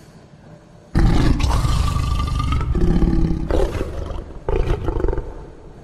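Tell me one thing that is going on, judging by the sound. A large wolf growls deeply and close by.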